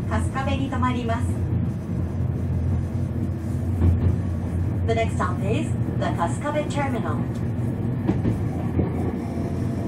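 A train rumbles with a low, steady hum.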